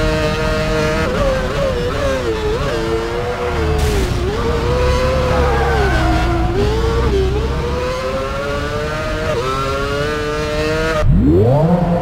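A racing car engine drops in pitch under braking through a corner, then rises again.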